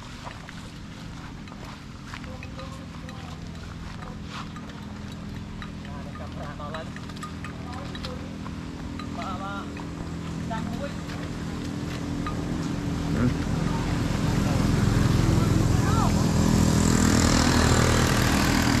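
Water buffalo hooves thud softly on wet grass.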